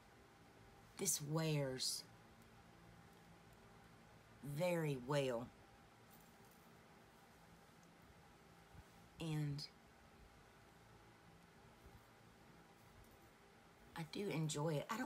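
A woman speaks calmly and close by in short phrases.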